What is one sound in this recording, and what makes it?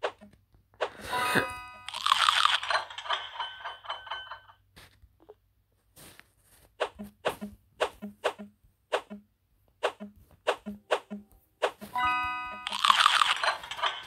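A bright jingle with a cheering burst plays as a level finishes.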